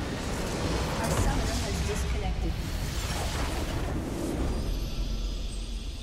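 A large game explosion booms and rumbles.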